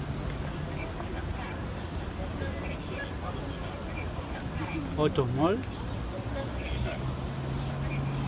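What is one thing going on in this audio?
Cars drive past on a busy city street.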